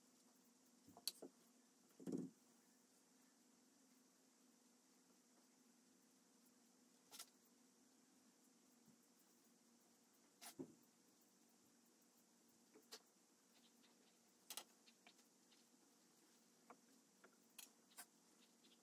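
Clay pieces knock and tap softly against hard surfaces.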